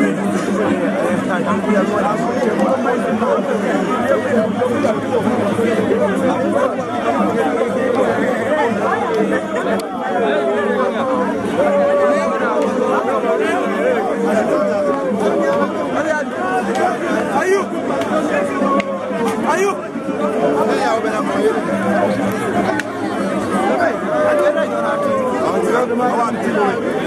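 A large outdoor crowd chatters and shouts all around, close by.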